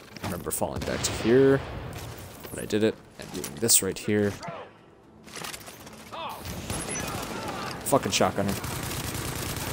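Rapid gunshots crack and echo.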